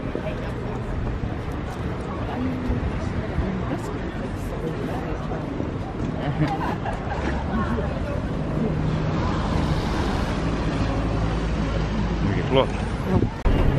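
A crowd of people chatters outdoors in a busy street.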